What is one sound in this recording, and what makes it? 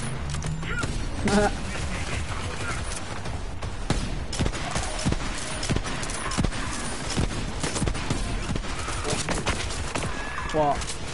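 Gunfire from a video game rifle cracks in rapid bursts.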